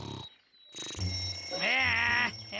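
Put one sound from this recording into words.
An alarm clock bell rings shrilly.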